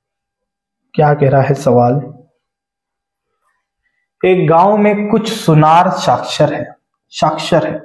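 A man speaks with animation into a nearby microphone.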